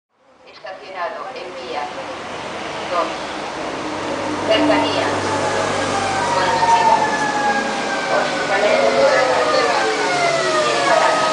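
A train rolls in with a growing rumble.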